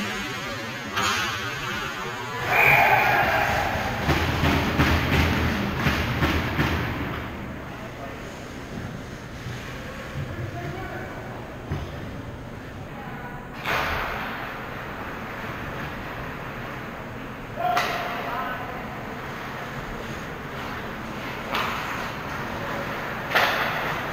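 A puck clacks against sticks and boards.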